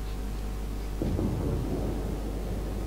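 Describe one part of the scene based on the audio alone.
Heavy guns fire with a deep, rumbling boom.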